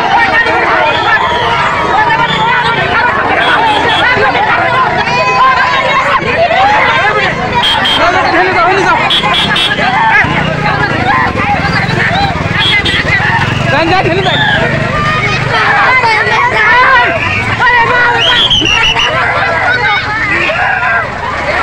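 A large crowd of men and women chants and shouts loudly outdoors.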